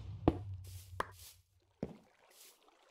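A block breaks with a short crumbling crack.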